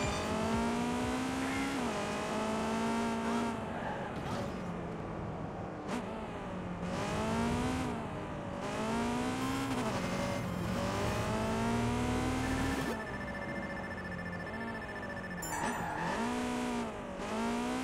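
A car engine roars and revs up and down repeatedly.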